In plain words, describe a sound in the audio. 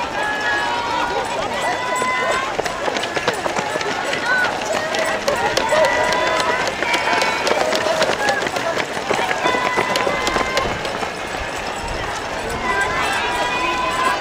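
A crowd of spectators cheers and calls out close by.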